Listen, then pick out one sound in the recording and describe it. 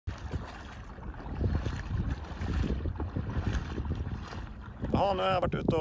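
A paddle splashes in water as a kayak glides along.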